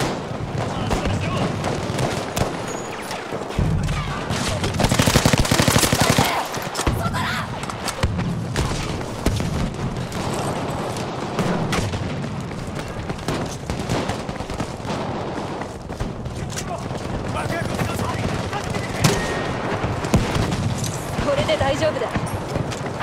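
Rifle shots crack repeatedly, close by.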